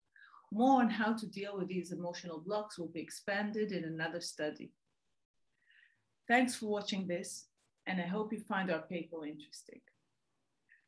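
A woman speaks calmly and clearly into a close microphone, as on an online call.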